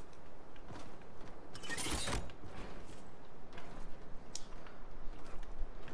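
A game character's pickaxe swings and clanks.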